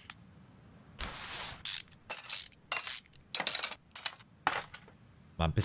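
Metal engine parts clink and rattle as they are taken off.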